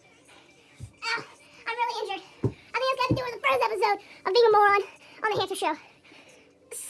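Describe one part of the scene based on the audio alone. A young boy talks close to the microphone with animation.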